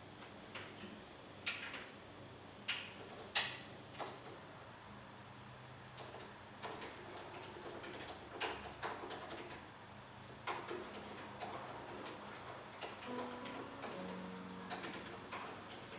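A man types on a laptop keyboard.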